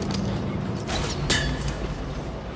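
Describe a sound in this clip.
A grappling hook fires with a sharp snap.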